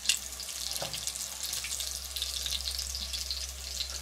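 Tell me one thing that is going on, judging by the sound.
Metal tongs clink against a pot.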